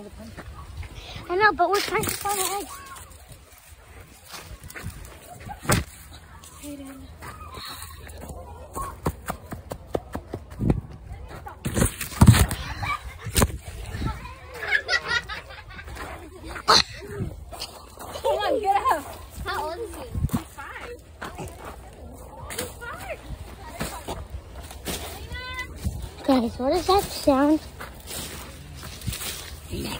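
Footsteps run quickly over dry dirt and crunch leaves.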